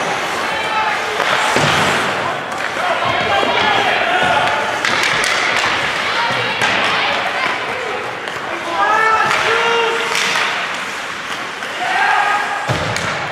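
Young players and spectators shout and cheer in an echoing rink.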